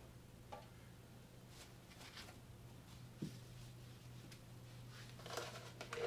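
Oil trickles into a metal pan.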